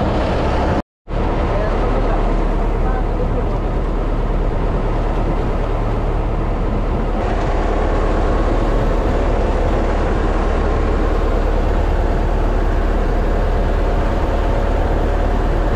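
Wind blows across the open sea.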